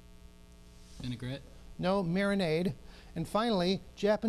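An older man reads out clearly through a microphone.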